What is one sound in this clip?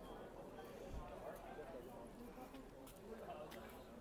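Several adults talk at a distance outdoors, their voices mixing in a low murmur.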